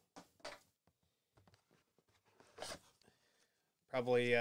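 Cardboard rustles and crinkles as a box is opened.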